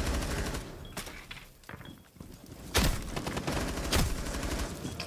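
A rifle fires sharp single shots.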